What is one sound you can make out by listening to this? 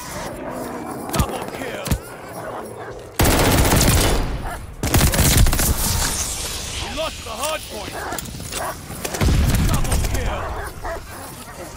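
Explosions boom heavily.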